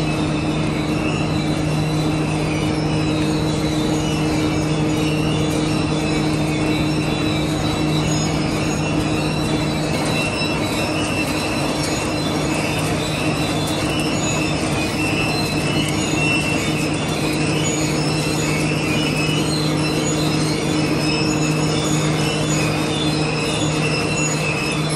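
Industrial machinery hums steadily.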